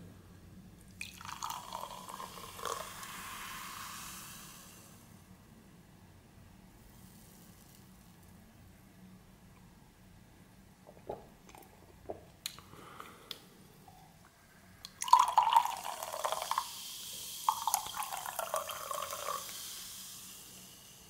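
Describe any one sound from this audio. Soda pours and splashes into a glass.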